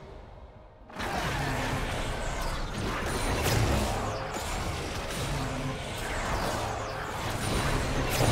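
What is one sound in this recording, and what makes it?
Magic spells whoosh and crackle in a busy fight.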